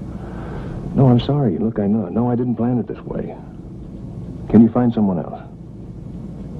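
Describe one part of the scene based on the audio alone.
A man speaks calmly into a telephone, close by.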